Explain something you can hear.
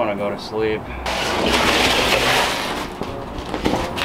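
Cardboard scrapes along a concrete floor.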